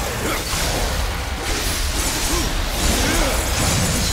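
Bones shatter and clatter as skeletons break apart.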